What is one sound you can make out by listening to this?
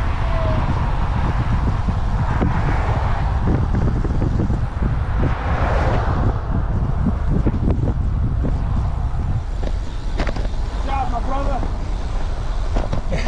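Wind roars loudly across a moving microphone outdoors.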